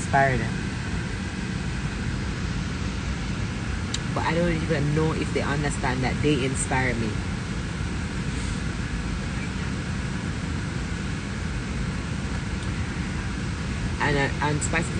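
A low steady engine hum drones in the background.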